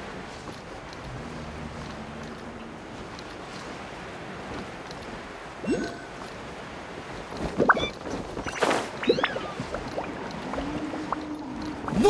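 Wind rushes softly past a gliding character.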